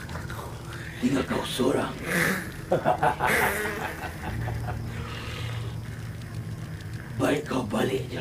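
An elderly man speaks in a low, tense voice.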